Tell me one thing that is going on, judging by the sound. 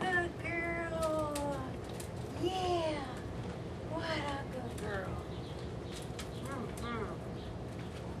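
A woman talks in a high, coaxing voice nearby.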